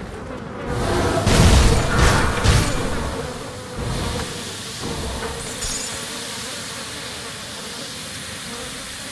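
Magic spells burst and crackle in a fight.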